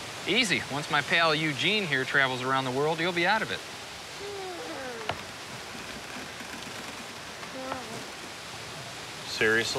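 A man speaks with animation nearby.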